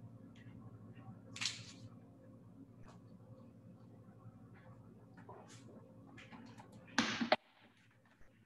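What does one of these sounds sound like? Paper rustles and crinkles close by.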